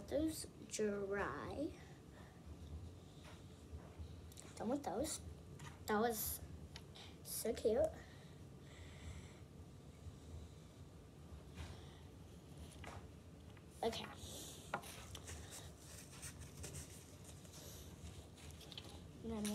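Small plastic toys click and tap on a table.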